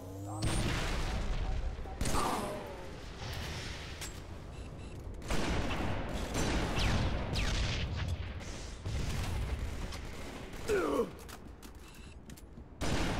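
A sniper rifle fires loud, booming shots now and then.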